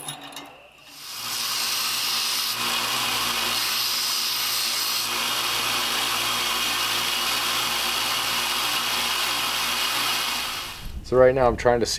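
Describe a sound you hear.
A belt sander whirs steadily as metal is ground against it.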